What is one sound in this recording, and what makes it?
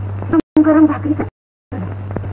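A woman speaks with emotion.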